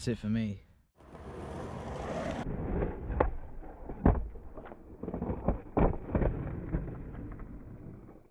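Skateboard wheels roll on concrete.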